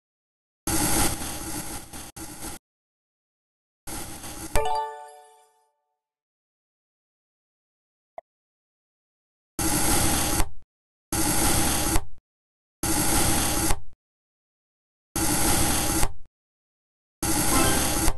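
A knife slices through soft soap in short scraping bursts.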